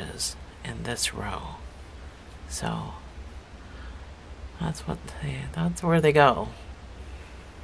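Soft knitted toys rustle faintly as hands turn them.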